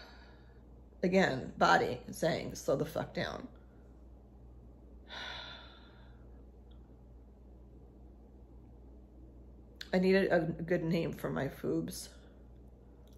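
A middle-aged woman speaks close by, calmly and with emotion, in short bursts.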